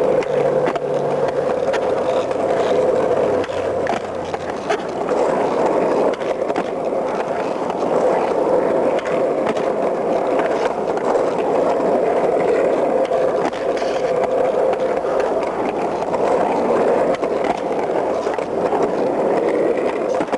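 A skateboard tail clacks sharply against the pavement.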